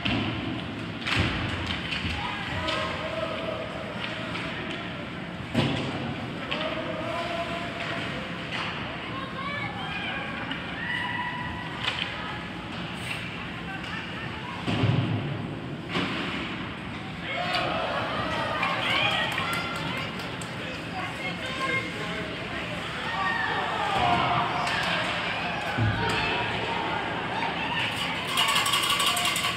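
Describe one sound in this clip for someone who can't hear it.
Skates scrape and carve across the ice in an echoing rink.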